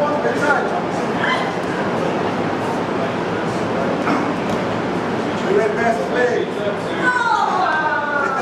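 Wrestlers' bodies rub and thump on a mat.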